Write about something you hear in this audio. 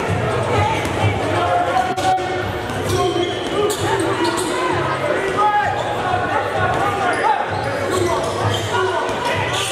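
A basketball bounces on a wooden floor.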